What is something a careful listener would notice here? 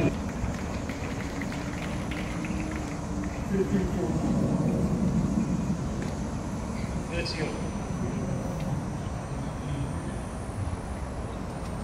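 A tennis ball is struck with a racket outdoors, with sharp pops.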